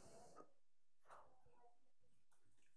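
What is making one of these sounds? A man bites into crusty bread.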